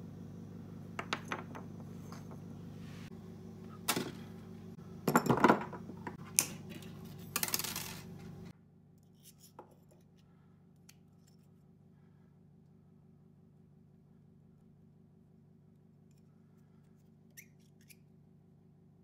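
Metal pliers click and tap against wire and a hard surface.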